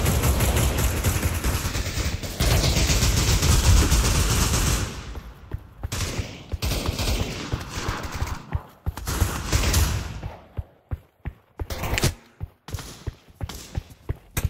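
Footsteps patter quickly on sand and stone.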